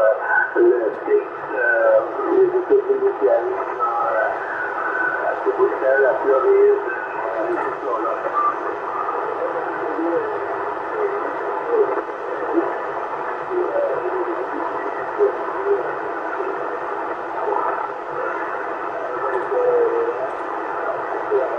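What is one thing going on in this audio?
A CB radio transceiver plays a weak, crackling transmission through its loudspeaker.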